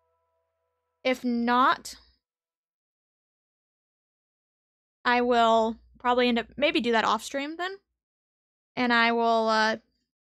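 A young woman talks with high, lively animation close to a microphone.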